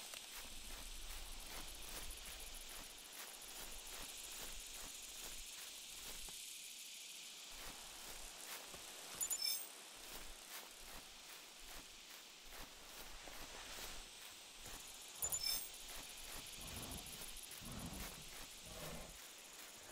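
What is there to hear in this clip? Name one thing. Footsteps swish through grass at a steady walking pace.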